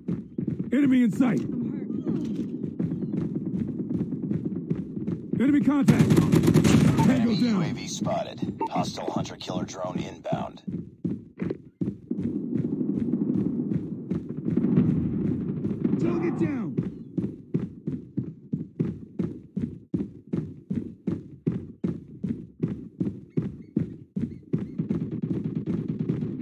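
Footsteps run quickly and steadily over hard ground.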